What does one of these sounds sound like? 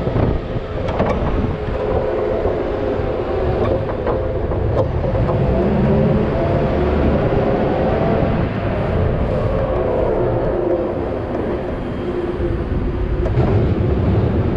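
Metal parts of a loader clank and rattle over bumps.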